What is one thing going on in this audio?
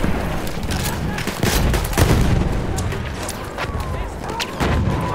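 Gunfire and explosions boom and crack all around.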